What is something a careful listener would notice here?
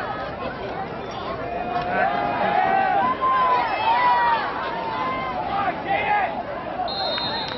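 A crowd of young players and spectators cheers and shouts outdoors.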